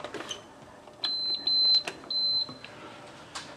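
An appliance beeps several times.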